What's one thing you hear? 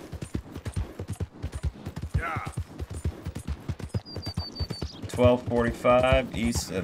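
A horse gallops with rapid, thudding hoofbeats on a dirt track.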